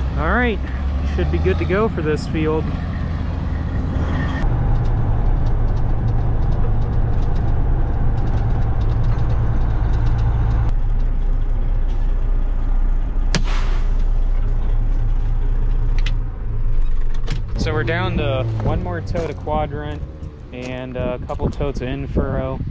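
A truck's diesel engine rumbles steadily close by.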